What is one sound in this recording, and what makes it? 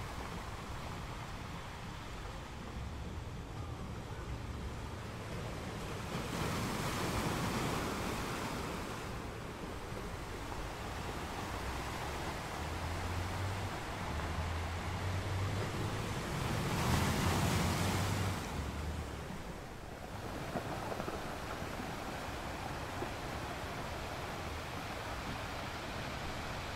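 Ocean waves break and crash, then wash over rocks in surges.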